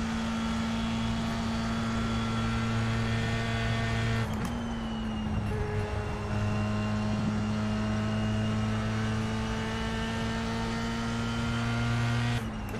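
A racing car engine drones at high revs, dropping in pitch briefly at a gear change and then climbing again.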